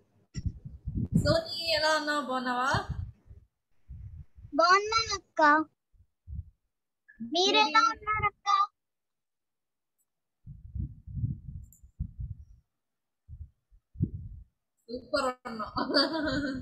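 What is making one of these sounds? A young woman speaks warmly through an online call.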